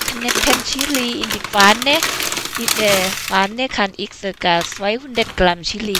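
Dried chillies rattle as they pour into a pan.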